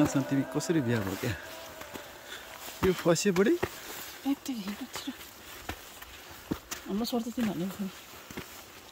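A woman talks close to a microphone.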